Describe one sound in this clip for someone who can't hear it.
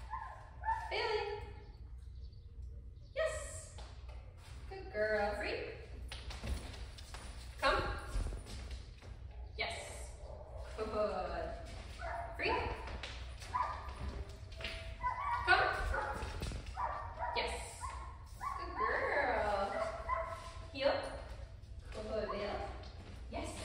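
A woman speaks calmly and encouragingly nearby.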